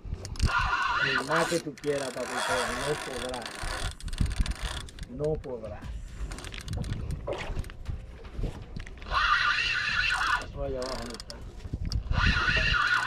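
A fishing reel's drag buzzes as line is pulled out.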